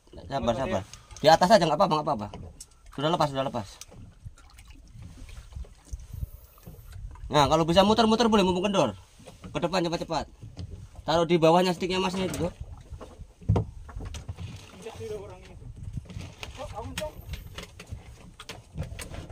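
Waves lap against a boat's hull.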